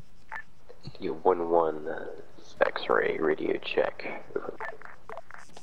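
A man talks animatedly, heard close through a microphone.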